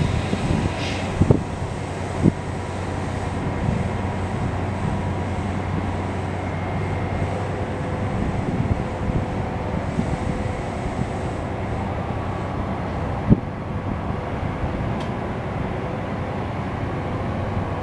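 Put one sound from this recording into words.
A passenger train idles nearby with a steady low rumble.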